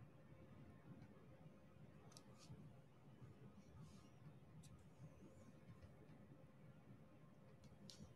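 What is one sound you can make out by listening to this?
A pen tip taps and clicks softly on small plastic beads.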